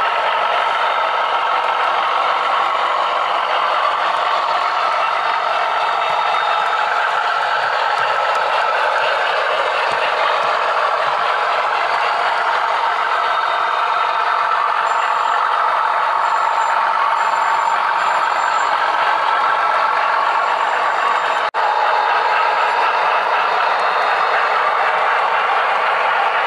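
A model train's motor hums as the railcar rolls along the track.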